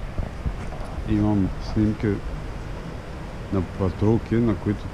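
A man talks quietly close by.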